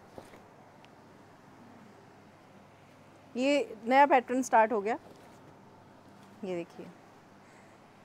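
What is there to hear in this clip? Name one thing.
Cloth rustles softly as trousers are lifted and laid down.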